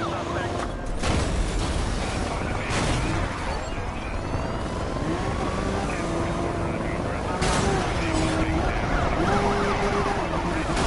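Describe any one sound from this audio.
A car crashes with a loud bang.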